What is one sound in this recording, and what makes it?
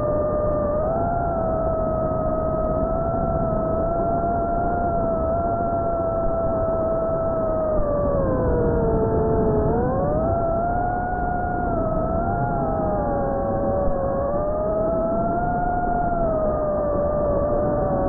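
Wind rushes past a model aircraft.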